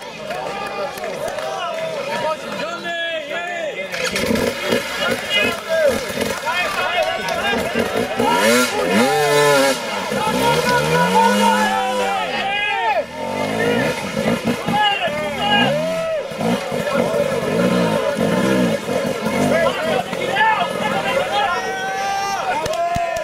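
A dirt bike engine revs in loud bursts.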